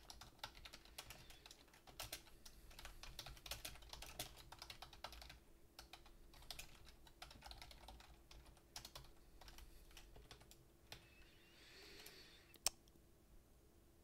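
Keys click quickly on a keyboard.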